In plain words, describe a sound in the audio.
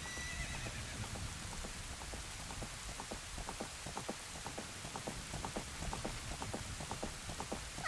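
Horse hooves clatter in a quick, steady rhythm, drawing nearer.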